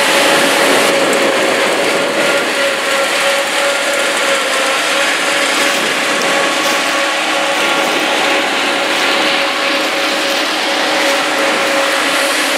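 Grain pours with a rushing hiss from a combine's unloading spout into a trailer.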